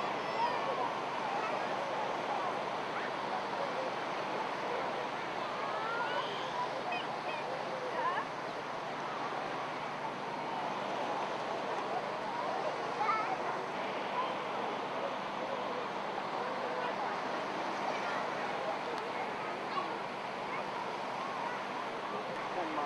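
Men, women and children chatter and call out nearby outdoors.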